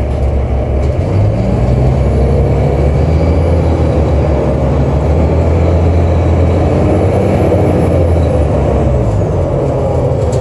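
The bus engine revs up and then settles as the bus speeds up.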